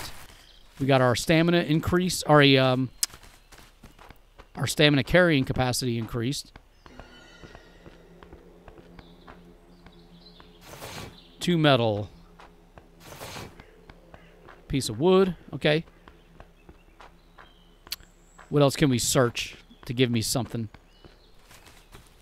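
Footsteps crunch slowly on frozen ground.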